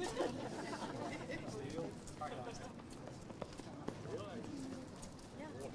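A crowd of people murmurs and chats nearby.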